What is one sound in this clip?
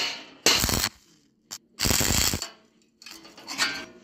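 An arc welder crackles and sizzles.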